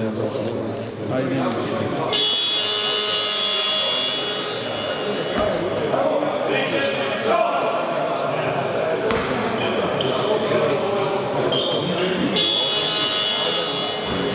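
People murmur and talk in a large echoing hall.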